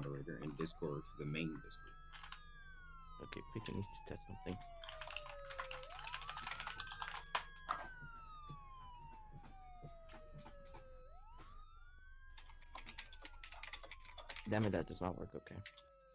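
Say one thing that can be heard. A police siren wails, slowly rising and falling.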